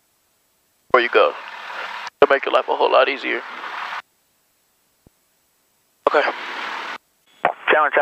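A young man speaks calmly through a headset intercom.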